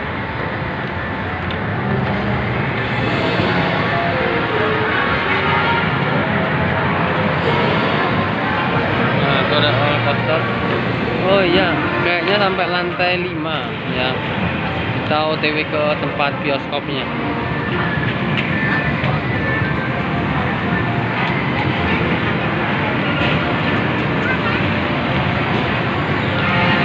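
Arcade machines play bright electronic jingles and music.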